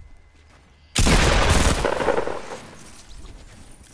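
A gun fires in a loud burst, echoing briefly.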